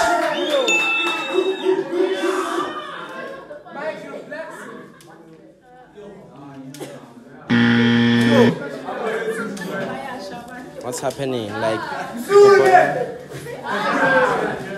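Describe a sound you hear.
Young women talk and laugh nearby.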